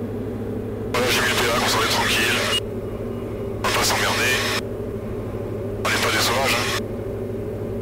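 A man speaks calmly over a crackly headset intercom in short bursts.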